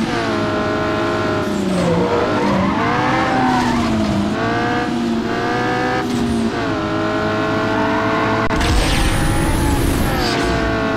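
A racing car engine roars loudly and revs up and down as the gears shift.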